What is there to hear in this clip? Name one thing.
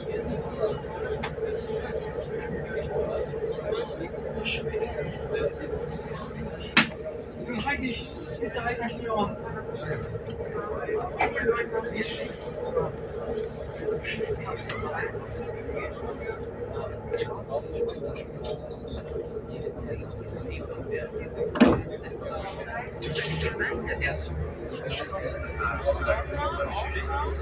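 A train's wheels rumble and click on the rails.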